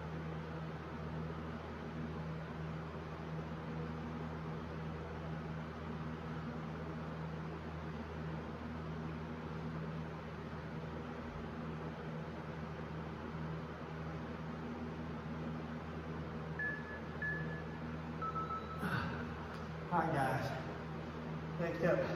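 A fan hums steadily.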